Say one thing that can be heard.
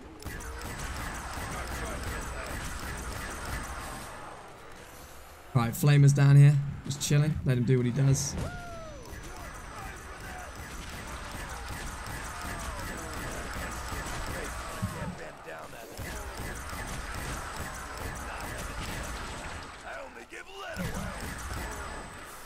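A ray gun fires rapid electronic zaps.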